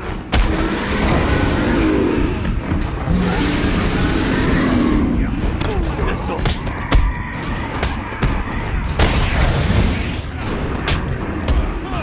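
Punches and kicks land with heavy thuds in a brawl.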